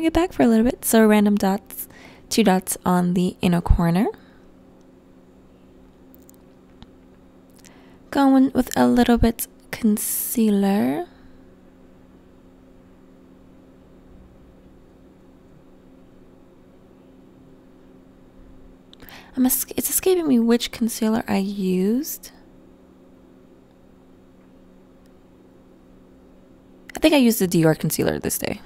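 A young woman speaks calmly and close to a microphone, in short bursts.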